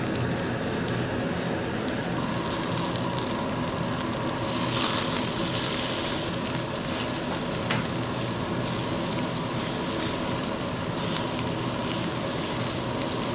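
Meat sizzles and crackles on a hot grill.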